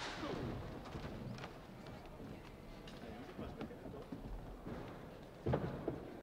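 Footsteps thud on a wooden stage.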